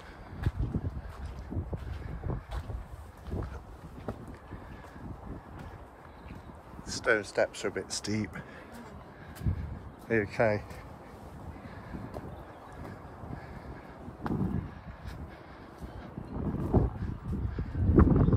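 Footsteps climb stone steps and cross paving outdoors.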